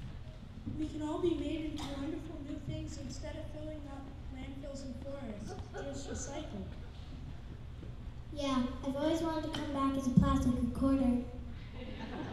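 A child speaks into a microphone, heard through loudspeakers in a large hall.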